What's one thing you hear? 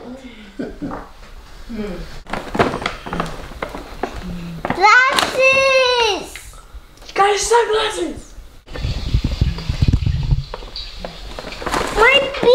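Paper rustles and crinkles as a child opens a present.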